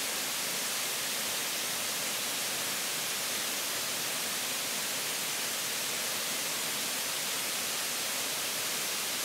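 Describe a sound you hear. A small waterfall splashes steadily onto rocks.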